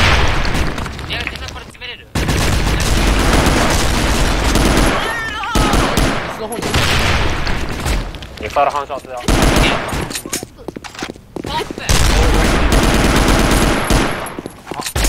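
Rapid rifle gunfire bursts loudly in an echoing space.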